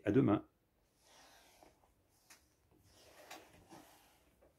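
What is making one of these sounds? Hands rub and shuffle on a wooden table.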